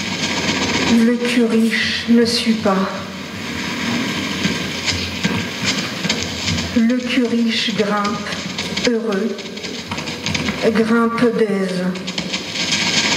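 A woman speaks into a microphone in short phrases, heard over a loudspeaker.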